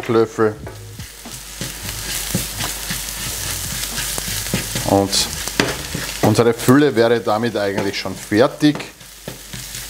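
A wooden spoon scrapes and stirs in a pan.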